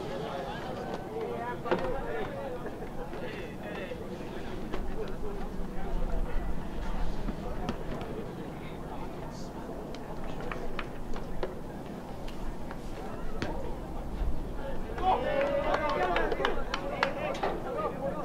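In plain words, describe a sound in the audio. Young players call out to each other across an open field.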